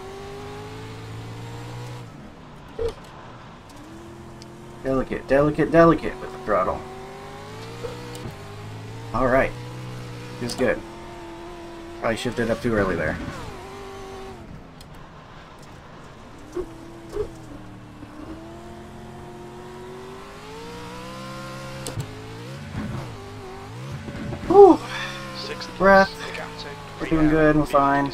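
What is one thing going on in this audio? A race car engine revs up and down, rising and falling in pitch.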